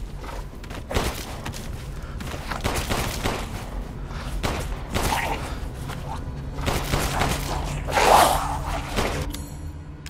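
A pistol fires several sharp shots.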